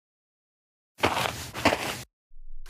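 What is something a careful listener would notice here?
Footsteps sound on a floor.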